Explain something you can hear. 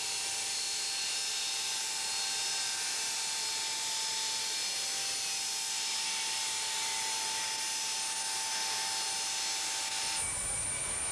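Jet engines whine loudly and steadily.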